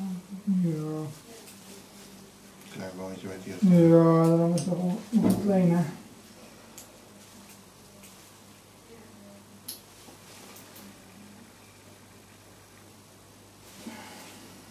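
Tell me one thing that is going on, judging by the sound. Metal surgical instruments clink softly.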